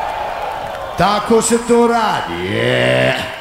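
A young man raps loudly into a microphone over loudspeakers.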